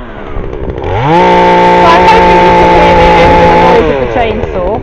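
A chainsaw cuts noisily through a branch.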